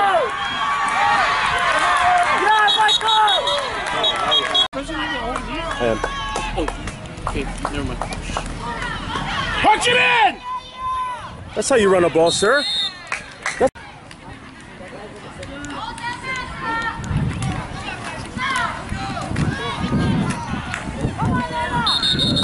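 Spectators on a sideline cheer and shout outdoors.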